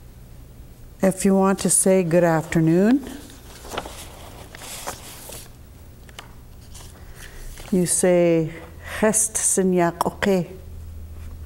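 An older woman speaks slowly and clearly into a nearby microphone, in short separate words.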